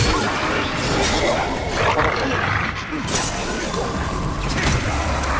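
Creatures snarl and screech.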